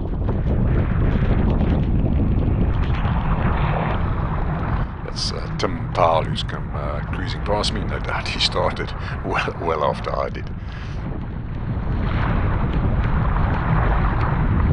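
Choppy water splashes against a kayak.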